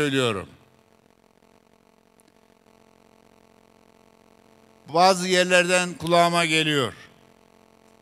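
An elderly man speaks loudly and emphatically into a microphone over loudspeakers, outdoors.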